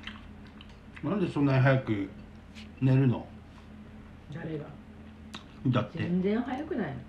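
A middle-aged woman talks calmly close by.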